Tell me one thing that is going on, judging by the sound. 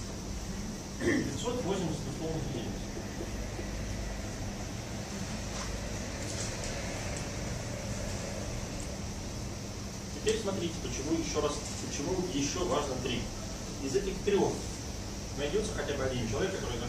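A middle-aged man lectures calmly in a room, heard from a distance.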